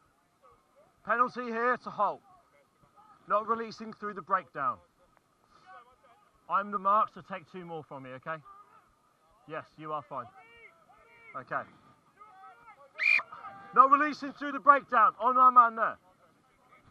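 A man calls out loudly in short bursts close by.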